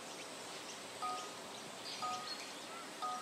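A game countdown beeps once a second.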